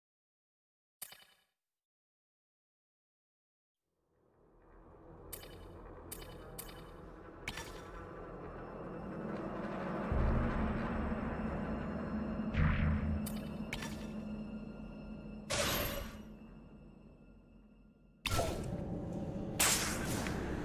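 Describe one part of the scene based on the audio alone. Short electronic blips sound as a menu selection moves.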